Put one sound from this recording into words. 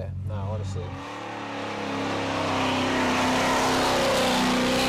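A car engine revs loudly.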